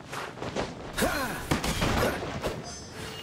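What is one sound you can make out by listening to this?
Heavy blows crash and thud.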